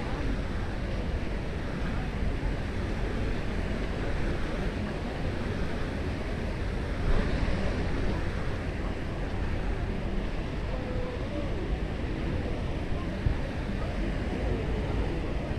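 Small waves wash gently onto the shore.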